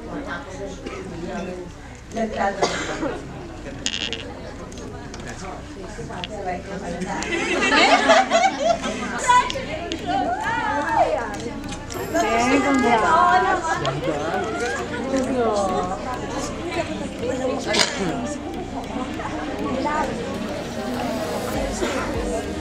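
A crowd of people chatter and laugh nearby.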